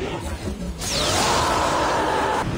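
A loud blast roars and crackles.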